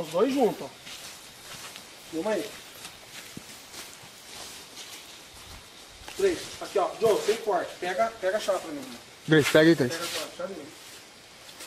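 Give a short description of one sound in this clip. A man talks in short bursts nearby.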